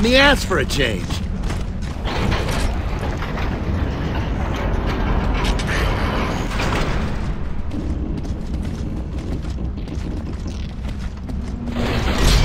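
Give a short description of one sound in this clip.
A heavy wooden door rumbles as it slowly rises.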